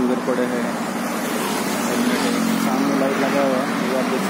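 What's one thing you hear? Traffic rumbles along a nearby road.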